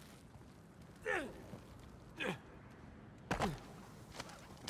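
A man grunts with effort while climbing.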